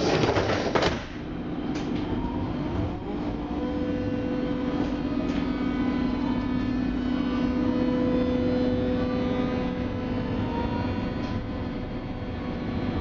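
A train's motor whines, rising and falling in pitch.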